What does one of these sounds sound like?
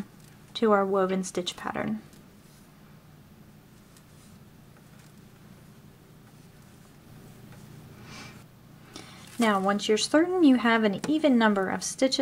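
A crochet hook pulls yarn through stitches with a soft rustle.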